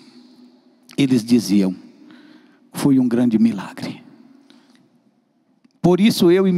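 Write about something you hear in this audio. A man speaks with emotion into a microphone, heard through loudspeakers in an echoing room.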